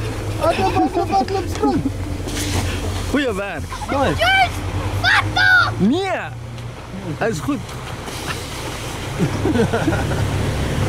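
Young children shriek and shout playfully outdoors.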